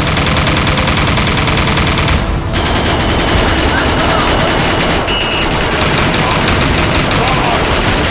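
Energy blasts boom and crackle.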